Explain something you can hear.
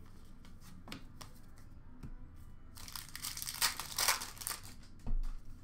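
Hands flip through a stack of trading cards.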